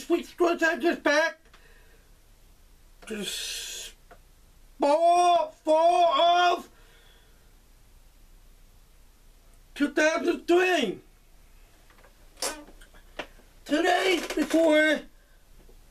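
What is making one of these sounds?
A man speaks with animation, close to a microphone, in short loud bursts.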